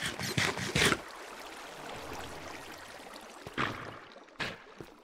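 Water flows steadily nearby.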